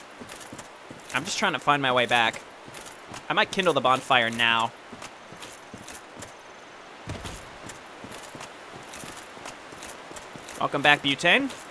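Armored footsteps run over grass and then stone.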